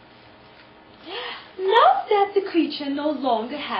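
A young woman speaks loudly and theatrically, close by.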